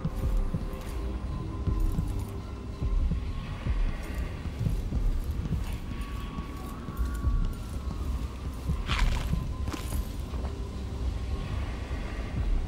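Footsteps thud slowly on a wooden floor.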